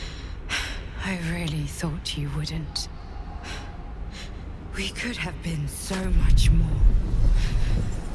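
A young woman speaks weakly and painfully, gasping between words.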